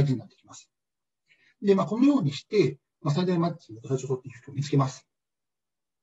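A man speaks calmly into a microphone, heard as if through an online call.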